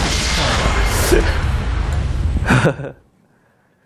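Video game battle effects clash and burst.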